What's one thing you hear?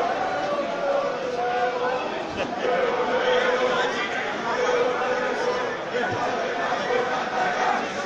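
A crowd of fans sings and chants loudly in an open stadium.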